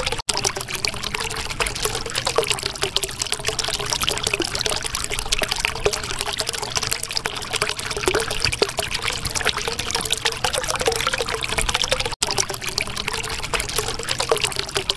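Air bubbles gurgle and pop steadily in water.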